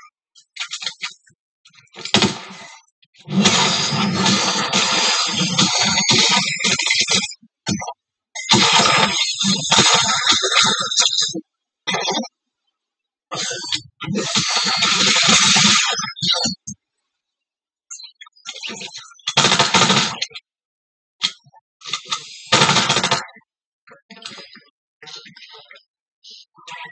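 Rapid gunshots from a video game play through a television speaker.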